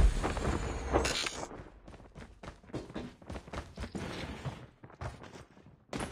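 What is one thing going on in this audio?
Footsteps of a game character thud quickly on a hard floor.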